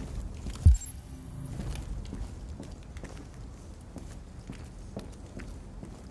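Footsteps tread across a wooden floor.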